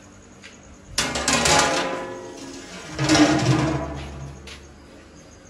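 A heavy metal lid clangs and scrapes onto a pot.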